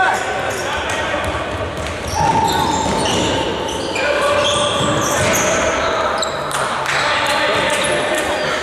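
Sneakers squeak sharply on a hard indoor court.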